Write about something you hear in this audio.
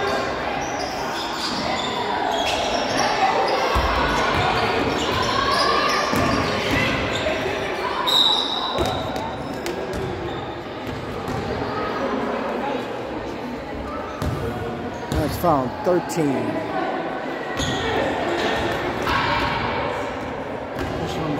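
Sneakers squeak on a wooden floor in a large echoing gym.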